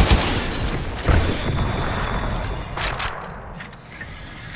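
Explosions boom and rumble loudly nearby.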